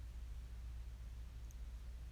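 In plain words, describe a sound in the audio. A refrigerator door thumps shut.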